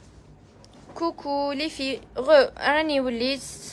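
A middle-aged woman speaks up close in a clear, lilting voice.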